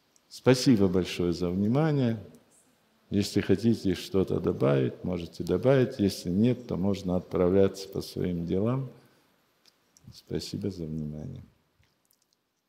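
An elderly man speaks calmly and warmly, close by.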